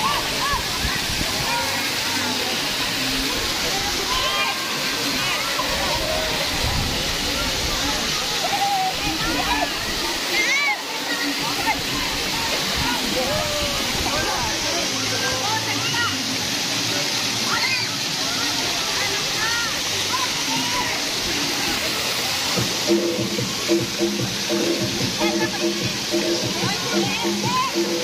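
Water splashes and pours steadily from fountains outdoors.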